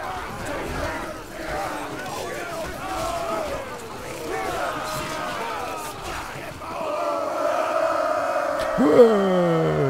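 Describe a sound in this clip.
Men shout and yell in battle.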